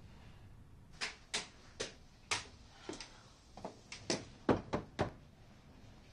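Footsteps climb a stairway.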